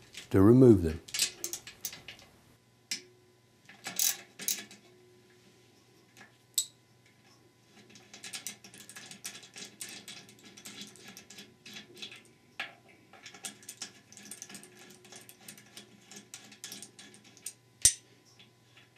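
A ratchet wrench clicks rapidly against metal.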